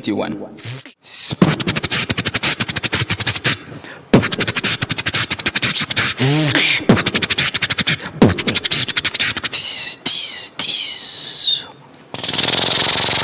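A young man beatboxes fast, punchy rhythms close into a microphone.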